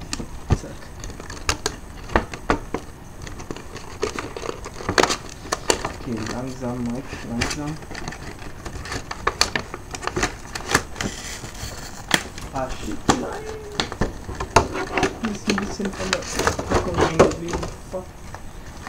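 A plastic box crinkles and clicks as it is handled.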